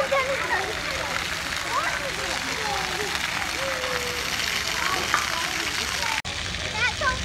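Children shout and call out in the distance outdoors.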